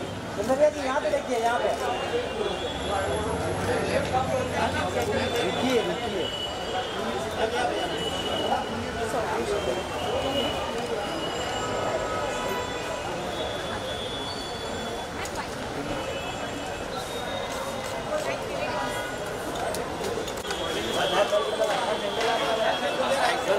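Several men call out and talk loudly nearby.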